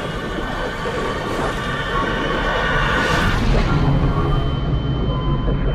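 Bubbles rush and churn underwater, heard muffled.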